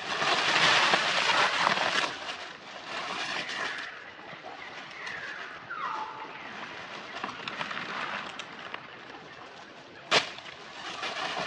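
Dry leaves rustle and crackle as monkeys shift about on them.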